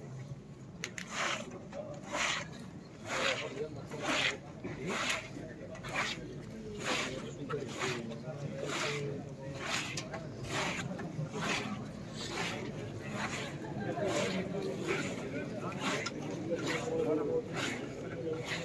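Many feet shuffle and stamp in a steady, even rhythm on paving.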